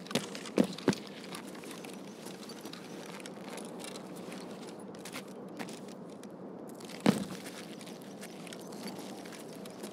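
Quick footsteps run over pavement.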